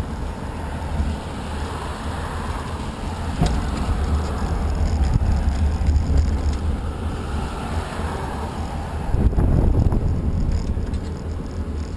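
Cars pass by on the road with a rushing swell.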